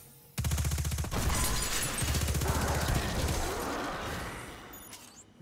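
Shot impacts crackle and explode.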